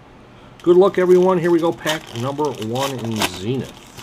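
Plastic card wrappers crinkle and rustle.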